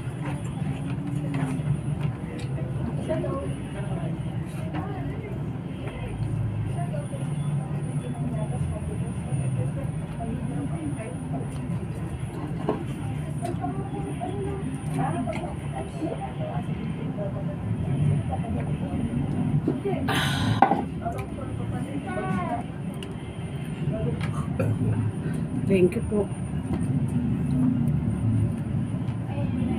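A woman chews food noisily close by.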